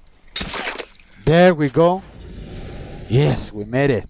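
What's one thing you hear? A blade stabs into flesh with a wet thud.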